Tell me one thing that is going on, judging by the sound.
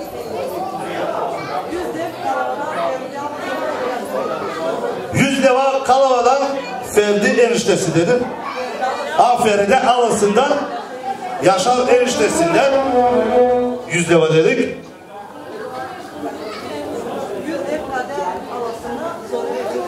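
A man speaks loudly and with animation into a microphone, heard through loudspeakers.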